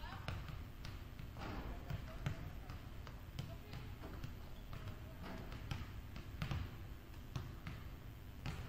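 A basketball bounces on a hardwood floor, echoing in a large hall.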